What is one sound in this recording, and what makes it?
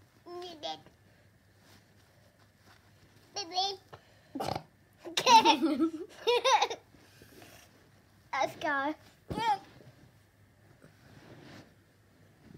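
Soft plush toys rustle against a fabric blanket.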